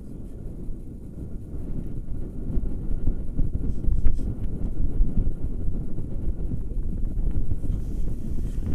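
Harness buckles click and rattle.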